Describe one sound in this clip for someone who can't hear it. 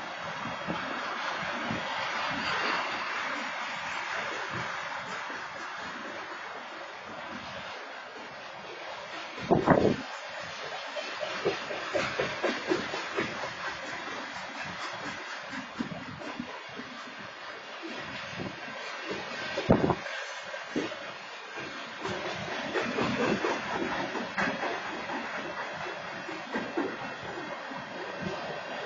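A freight train rolls past.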